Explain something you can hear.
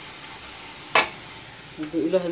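Dry grains pour and patter into a metal pot.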